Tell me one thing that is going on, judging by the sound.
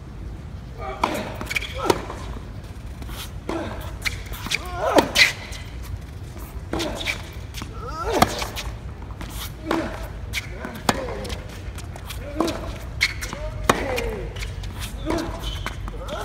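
A tennis player grunts loudly with each stroke.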